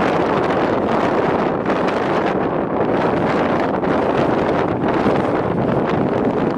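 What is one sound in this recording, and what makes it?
Strong wind blows and buffets loudly outdoors.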